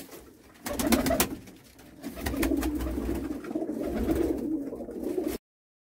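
A pigeon flaps its wings briefly.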